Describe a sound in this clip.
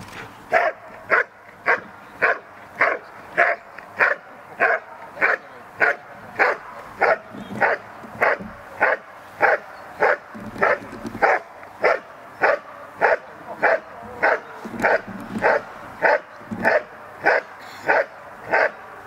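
A dog barks loudly and rhythmically, close by.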